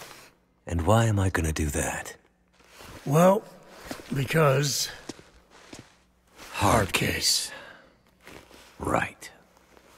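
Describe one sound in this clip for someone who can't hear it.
A man speaks in a low, gravelly voice, close by, in short lines with pauses.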